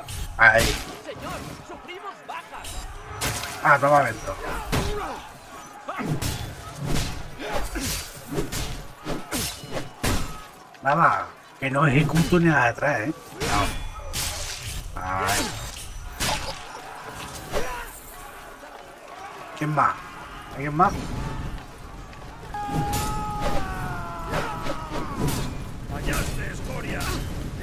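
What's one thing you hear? Swords clash and strike in quick blows.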